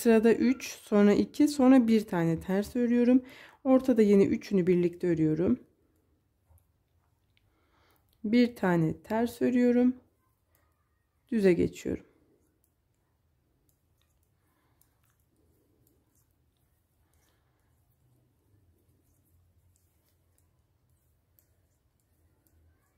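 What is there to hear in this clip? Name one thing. Knitting needles click softly against each other.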